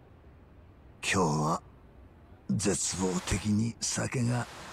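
An elderly man speaks quietly and wearily.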